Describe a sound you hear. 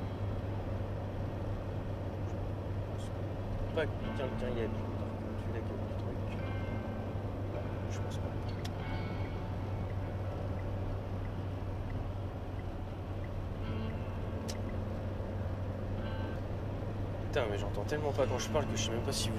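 A car engine hums steadily with road noise inside the cabin.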